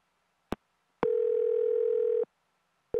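A phone line gives a steady tone.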